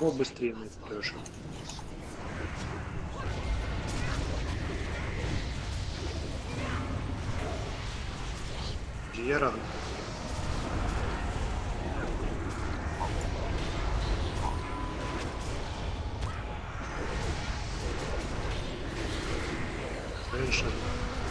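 Game spell effects whoosh and crackle in a busy battle.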